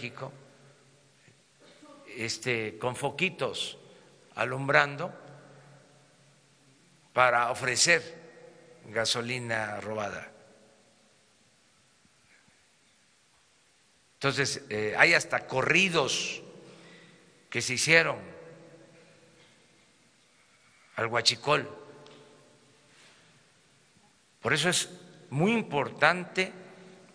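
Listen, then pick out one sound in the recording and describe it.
An elderly man speaks emphatically into a microphone, in bursts with pauses.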